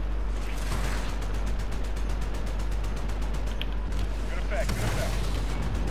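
A cannon fires in a rapid burst.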